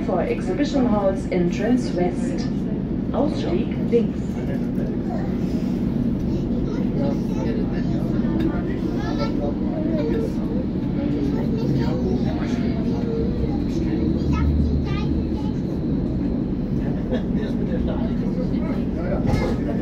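A subway train rumbles loudly and steadily through a tunnel.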